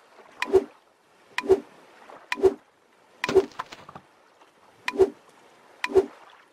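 A blade swishes and chops through plants in a steady rhythm.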